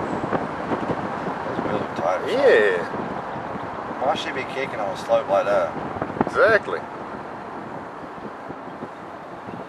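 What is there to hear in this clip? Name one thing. Tyres roll steadily on an asphalt road.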